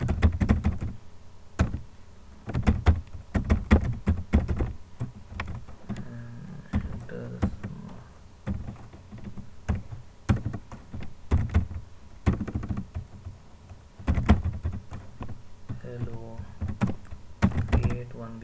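Keys on a keyboard click in quick bursts of typing.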